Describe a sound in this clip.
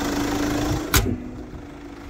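A car bonnet slams shut.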